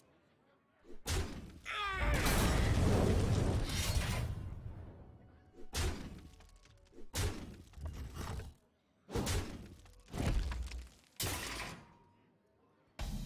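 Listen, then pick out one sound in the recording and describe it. Magical blasts boom and crackle in quick bursts.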